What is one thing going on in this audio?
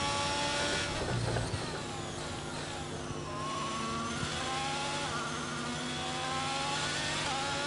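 A racing car engine whines high, drops as it slows, then climbs again as it speeds up.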